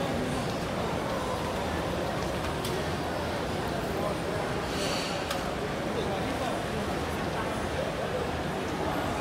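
A crowd of people murmurs indistinctly all around.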